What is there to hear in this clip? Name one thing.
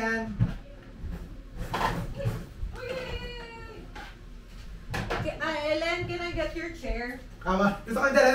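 A young woman talks nearby in a room.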